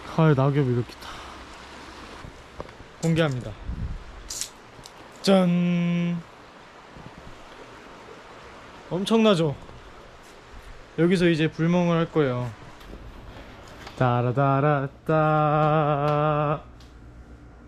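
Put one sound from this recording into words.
A young man talks close to a microphone, calmly and with animation.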